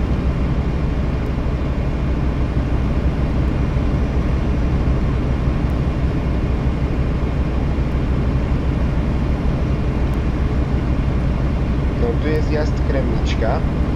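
A truck engine drones steadily as it cruises.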